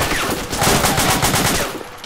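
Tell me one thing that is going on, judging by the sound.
An explosion bursts close by.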